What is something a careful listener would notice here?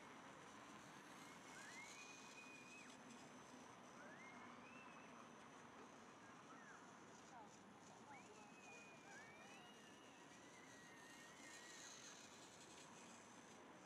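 A toy train's motor whirs as it passes close by.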